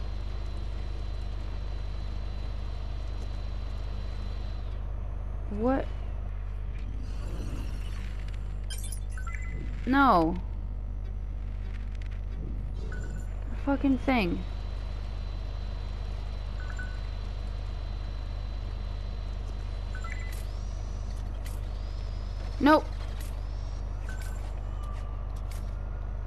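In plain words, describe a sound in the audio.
A small toy robot whirs as it drives along.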